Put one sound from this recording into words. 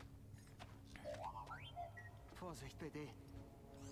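A small robot beeps and chirps in rising tones.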